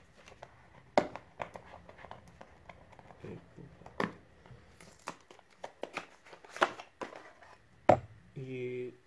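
Small plastic knocks and taps sound as a phone is handled.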